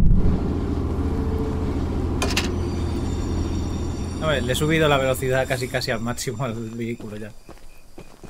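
A locomotive engine rumbles steadily up close.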